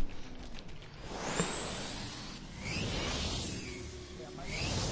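A hoverboard hums and whooshes along steadily.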